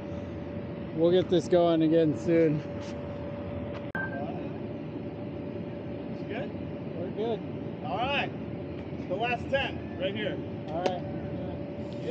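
A young man talks casually nearby.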